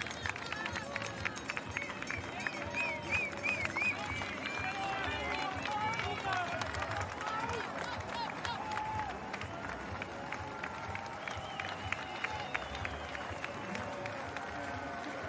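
A crowd of spectators claps and cheers outdoors.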